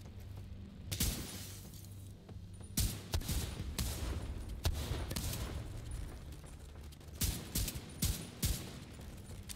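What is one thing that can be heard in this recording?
Gunshots crack in short bursts and echo.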